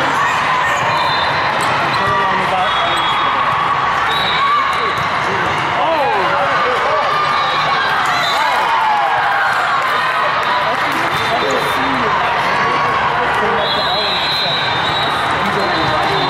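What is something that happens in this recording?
A volleyball thumps against hands and arms.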